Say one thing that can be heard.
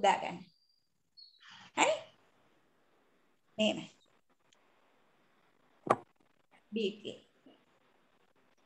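A woman speaks close by in short bursts, with long pauses.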